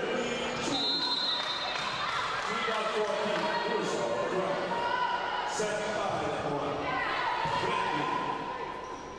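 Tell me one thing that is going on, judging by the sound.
Sports shoes squeak on a hard court.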